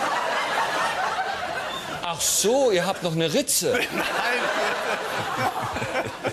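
A man laughs heartily.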